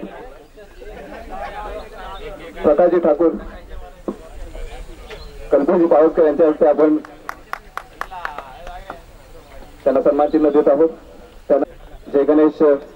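A man announces loudly through a microphone and loudspeakers, outdoors.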